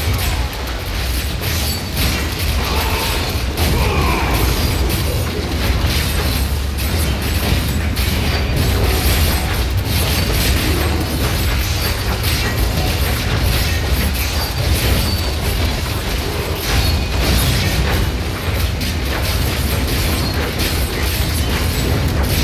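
Game spells burst and hiss in rapid succession.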